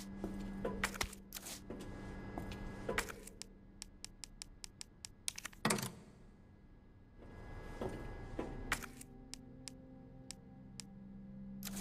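Short sharp clicks tick rapidly, like menu selections.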